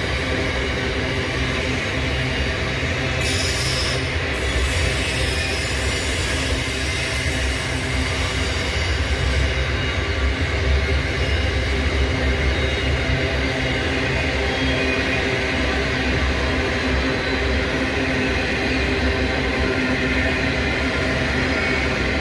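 A long freight train rumbles and clatters steadily along the rails nearby.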